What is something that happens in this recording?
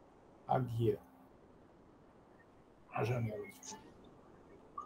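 An elderly man speaks in short phrases through an online call.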